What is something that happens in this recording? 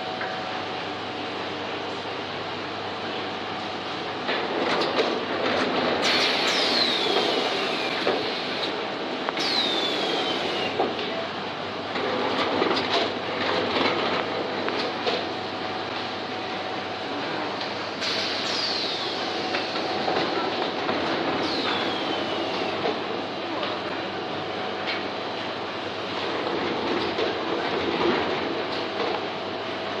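A machine hums and clatters steadily.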